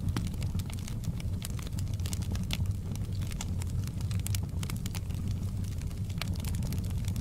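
A fire roars with a low, steady rumble.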